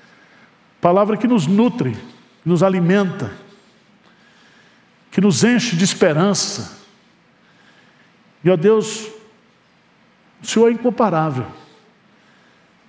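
A man speaks with emphasis through a microphone and loudspeakers, in short bursts with pauses, echoing in a large hall.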